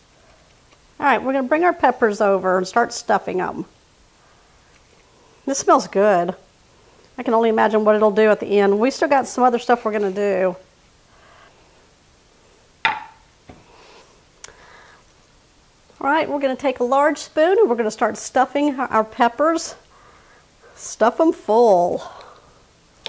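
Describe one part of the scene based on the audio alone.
A woman talks calmly close to a microphone.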